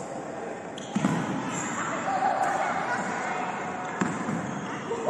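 A badminton racket strikes a shuttlecock in a large echoing hall.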